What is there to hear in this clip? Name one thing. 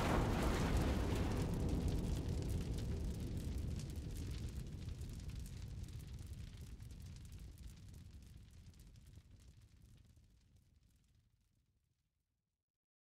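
A building collapses with a deep, rumbling roar that slowly fades away.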